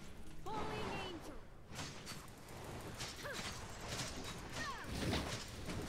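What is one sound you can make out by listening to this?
Magic blasts and electric zaps crackle and burst in a fast fight.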